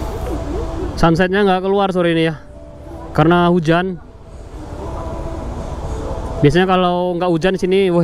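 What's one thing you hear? A man speaks close by in short, calm phrases.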